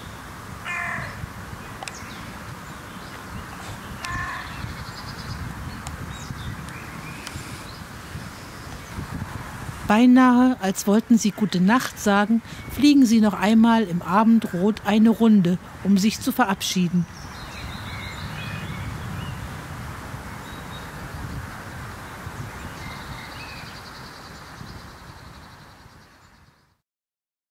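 Birds chirp now and then outdoors.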